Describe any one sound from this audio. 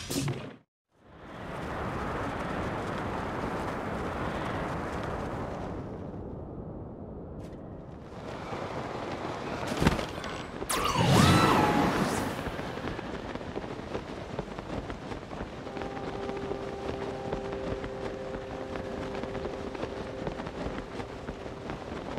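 Wind rushes loudly past a figure falling through the air.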